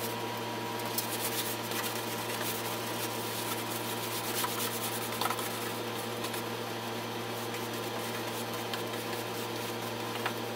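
A paintbrush swishes softly across wood.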